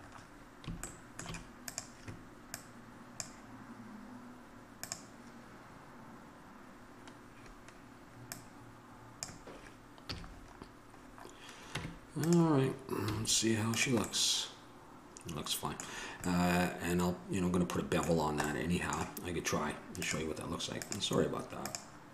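A computer mouse clicks now and then.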